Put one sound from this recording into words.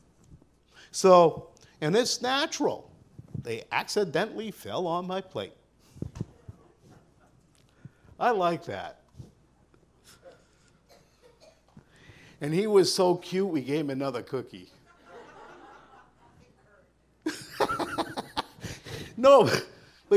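A middle-aged man preaches with animation through a microphone, pausing between phrases.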